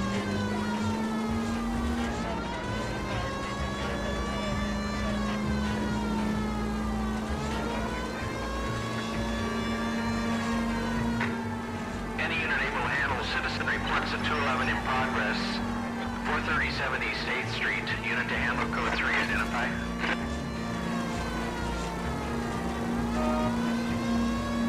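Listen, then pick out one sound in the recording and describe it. A car engine hums and revs up and down through its gears.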